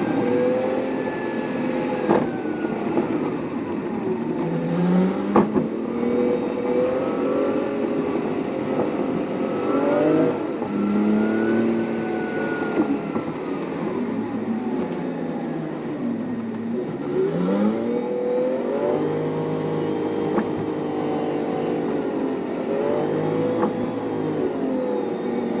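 A bus engine hums and whines, rising and falling in pitch as the bus speeds up and slows in traffic.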